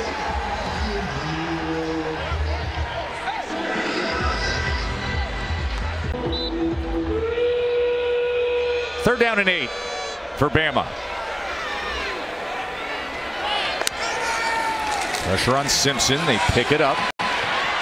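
A large stadium crowd cheers and roars outdoors.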